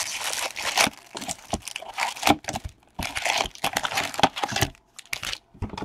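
A cardboard box is torn open and its flaps rustle.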